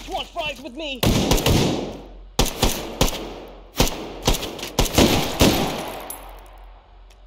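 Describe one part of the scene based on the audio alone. Gunshots fire in rapid bursts and echo loudly.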